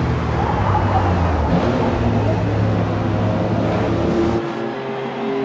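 A car engine roars loudly up close.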